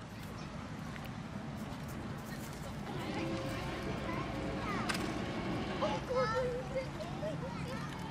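A boat's engine hums low and steady as the boat slowly passes on the water.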